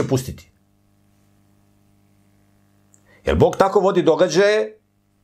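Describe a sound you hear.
A middle-aged man speaks emphatically into a nearby microphone.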